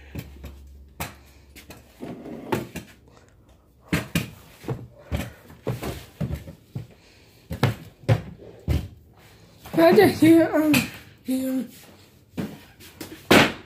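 Objects knock and rattle as a hand rummages through shelves.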